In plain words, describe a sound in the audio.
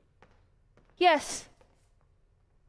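A young woman calls out briefly.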